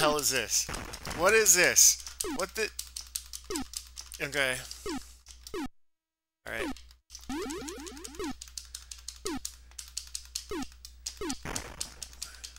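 Rapid electronic laser zaps fire again and again.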